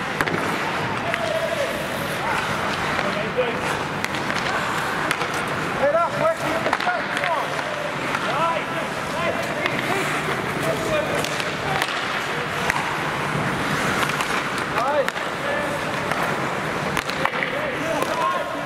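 Players shout to one another in a large echoing rink.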